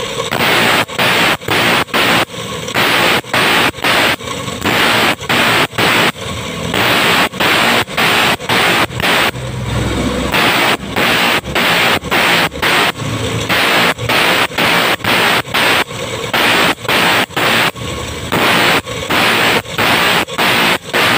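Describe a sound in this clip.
A metal file rasps against a metal plate in repeated strokes.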